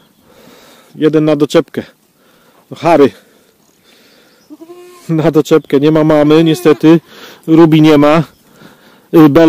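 Goats bleat loudly and repeatedly close by.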